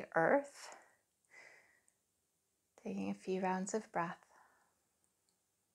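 A young woman speaks calmly and softly through a close microphone.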